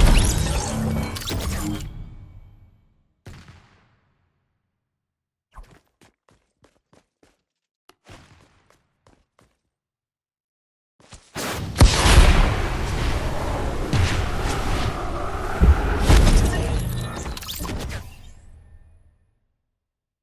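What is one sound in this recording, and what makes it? A loud rushing whoosh roars and then fades away.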